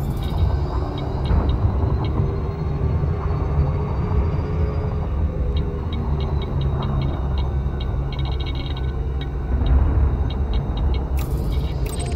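Soft interface beeps tick in quick bursts.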